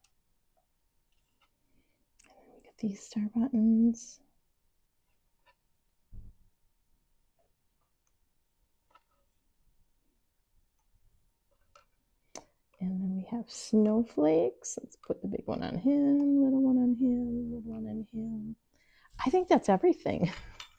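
Small beads click softly as hands sort them.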